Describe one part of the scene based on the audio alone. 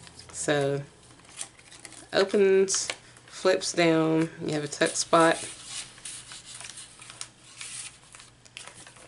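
Paper rustles and crinkles as pages are folded and flipped.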